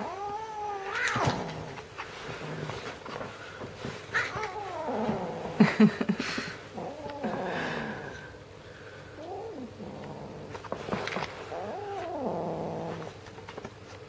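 A man talks playfully up close.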